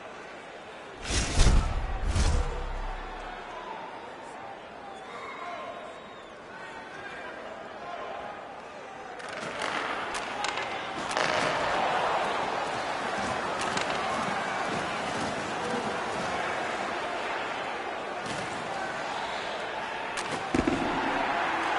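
Hockey sticks slap a puck with sharp clicks.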